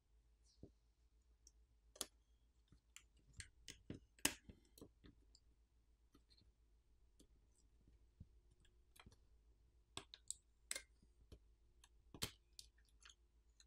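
Small plastic parts click and snap as a tool pries them apart.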